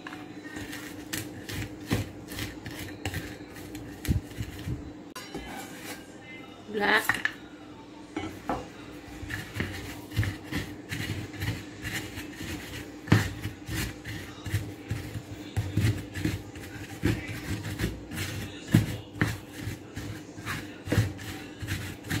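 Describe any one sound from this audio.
A wooden pestle pounds and grinds against a wooden mortar with dull knocks.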